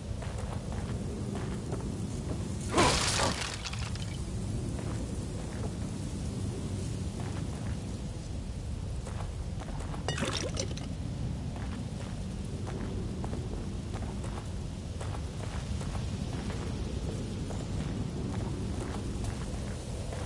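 Footsteps crunch on rough ground.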